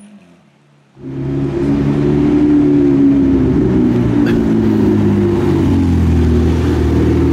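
A sports car engine roars as the car drives past close by.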